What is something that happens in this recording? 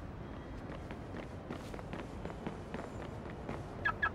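Footsteps slap quickly on pavement.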